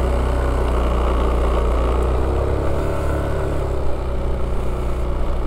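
Wind rumbles past outdoors.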